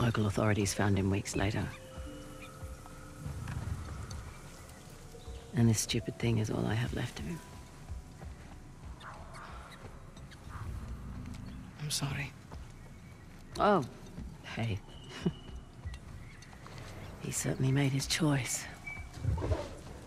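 A young woman speaks softly and sadly, close by.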